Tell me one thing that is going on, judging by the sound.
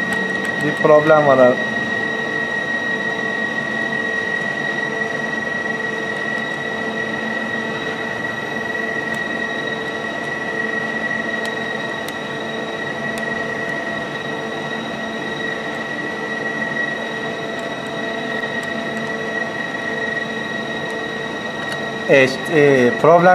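Buttons on a control panel click as they are pressed.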